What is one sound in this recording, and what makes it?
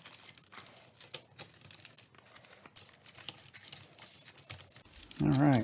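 Colored pencils rustle and click against each other as hands arrange them.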